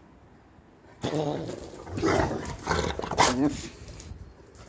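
A dog pants up close.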